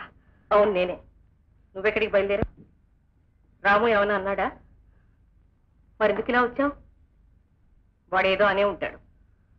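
A middle-aged woman speaks in short, emotional phrases close by.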